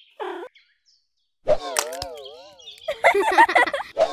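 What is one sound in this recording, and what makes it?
An eggshell cracks open with a sharp click.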